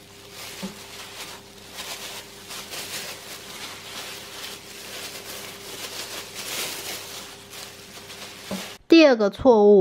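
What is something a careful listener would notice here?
Plastic gloves crinkle and rustle as hands knead soft dough.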